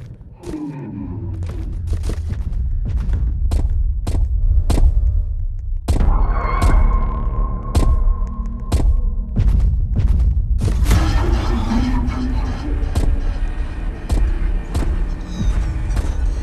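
Footsteps patter quickly as a character runs.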